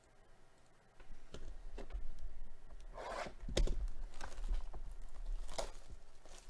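Plastic shrink wrap crinkles and rustles as a box is handled.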